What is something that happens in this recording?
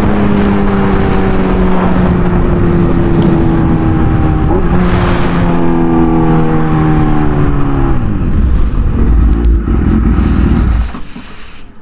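A motorcycle engine roars at high speed, then slows down.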